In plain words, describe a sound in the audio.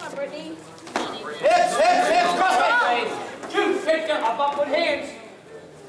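A man shouts loudly from close by.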